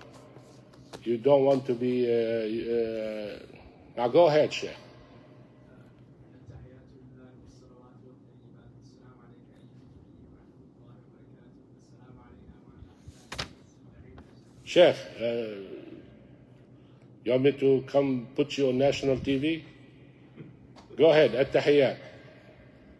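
A middle-aged man speaks with animation close to a microphone, with long pauses.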